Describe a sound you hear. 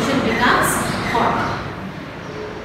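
A woman speaks clearly and with animation.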